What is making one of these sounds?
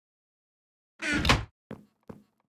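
A wooden chest thumps shut.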